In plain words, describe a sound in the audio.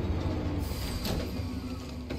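A vehicle door clicks open.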